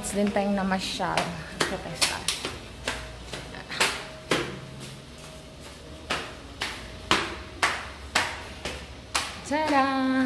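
Footsteps climb hard tiled stairs at a steady pace.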